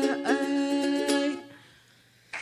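A young woman sings into a microphone.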